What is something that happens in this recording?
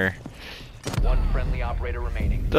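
A loud explosion booms with crackling sparks.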